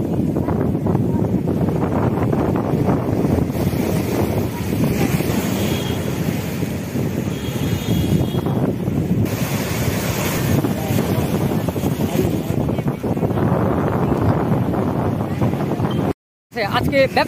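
Waves crash and surge against a sea wall.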